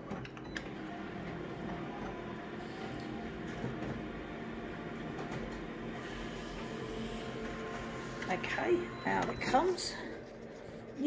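A copier whirs loudly as it prints.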